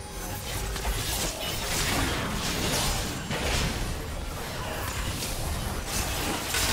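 Magic spell effects whoosh and crackle in quick bursts.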